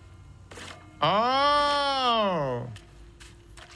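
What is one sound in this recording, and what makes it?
A young man exclaims with a long drawn-out cry into a microphone.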